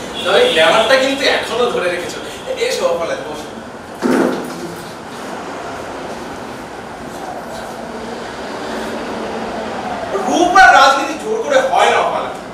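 A young man speaks loudly and dramatically.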